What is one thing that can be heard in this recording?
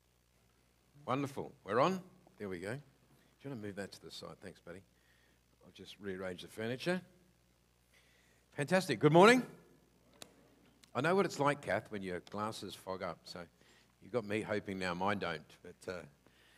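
A man speaks calmly through a microphone and loudspeakers in a large room.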